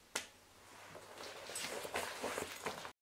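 A man rustles a sheet of paper close by.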